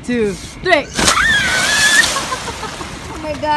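Water splashes loudly as a body plunges into a pool.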